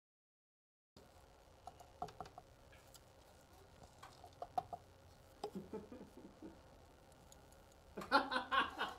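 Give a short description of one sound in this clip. Small objects clink and tap on a hard surface.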